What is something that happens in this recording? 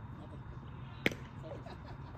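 A baseball smacks sharply into a leather glove.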